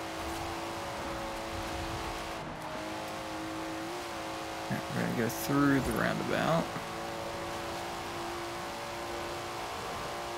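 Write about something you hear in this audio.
A car engine hums steadily at high speed.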